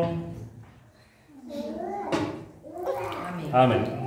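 Water splashes and trickles into a basin.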